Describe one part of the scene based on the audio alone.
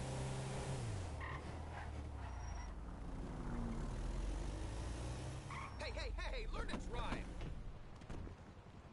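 A van engine hums and rumbles as the van drives along a road.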